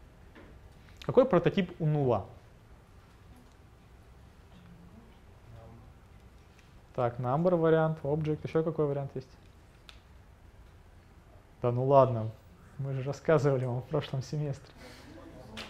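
A young man lectures calmly in a room with a slight echo, in short bursts with pauses.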